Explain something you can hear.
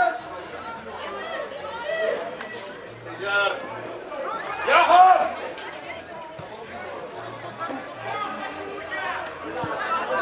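Spectators shout and cheer loudly outdoors.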